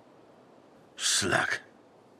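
A man mutters a short curse close by.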